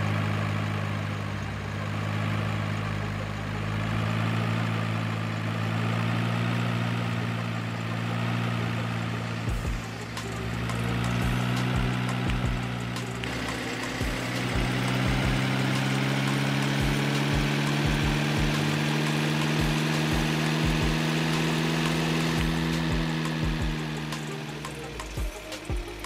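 A heavy truck engine rumbles steadily and rises in pitch as it speeds up.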